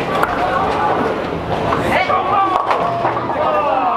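Bowling pins crash and clatter.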